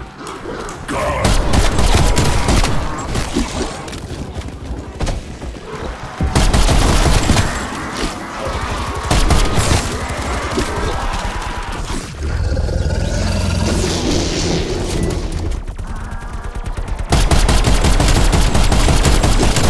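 Rapid gunshots fire at close range.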